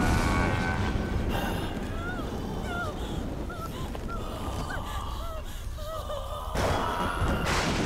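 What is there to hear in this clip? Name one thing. A young woman cries out in fear.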